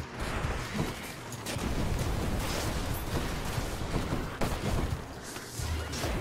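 Magic blasts crackle and whoosh in quick bursts.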